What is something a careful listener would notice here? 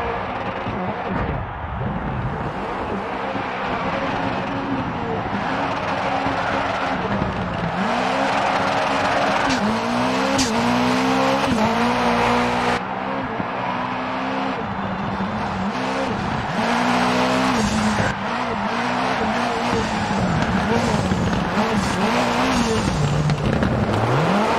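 A race car engine revs hard and rises and drops in pitch with each gear change.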